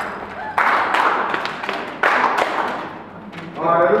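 A group of people claps.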